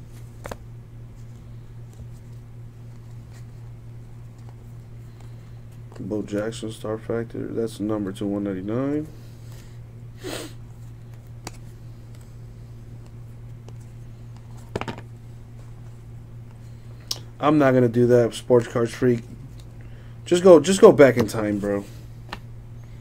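Trading cards softly rustle and slide against each other in hands.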